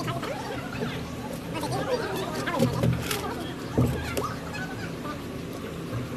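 A wooden sieve box knocks and rattles with stones.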